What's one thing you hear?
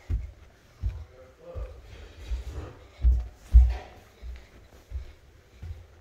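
Footsteps thud on carpeted stairs.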